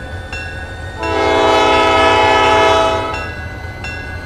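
A train horn blows loudly for about two seconds.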